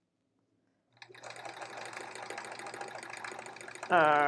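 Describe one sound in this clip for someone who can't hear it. A sewing machine runs with a steady whir.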